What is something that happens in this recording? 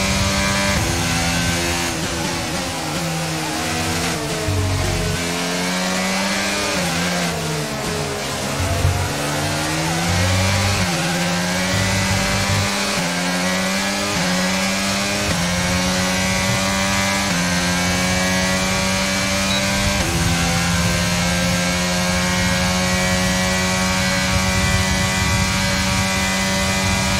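A racing car engine screams close by, dropping in pitch when braking and rising through the gears as it speeds up.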